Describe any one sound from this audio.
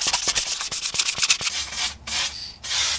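Sandpaper rubs quickly over plastic.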